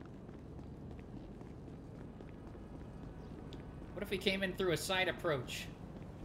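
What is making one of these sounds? Footsteps tap on pavement at a walking pace.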